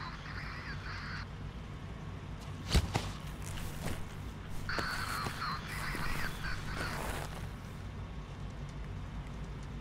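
Boots step softly on a concrete floor.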